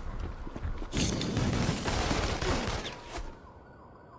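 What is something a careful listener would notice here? A burst of rushing energy whooshes past.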